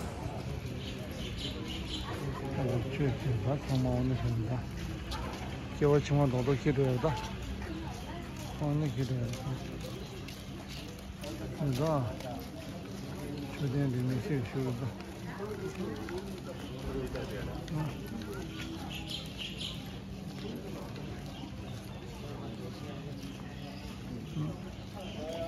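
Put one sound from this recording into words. Men and women talk as they walk past outdoors.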